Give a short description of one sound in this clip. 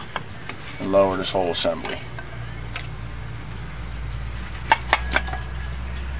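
Metal brake parts clink and rattle as they are pulled loose.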